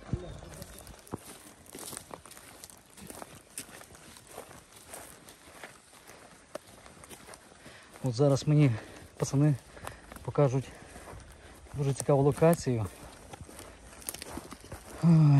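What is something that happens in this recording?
Footsteps crunch on dry twigs and leaves.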